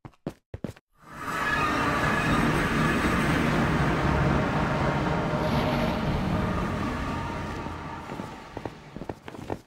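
A deep rushing whoosh swells up and slowly fades away.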